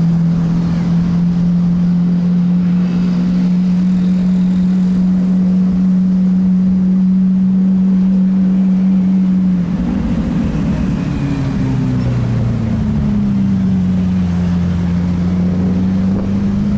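A car engine drones steadily from inside the car, its pitch shifting as the gears change.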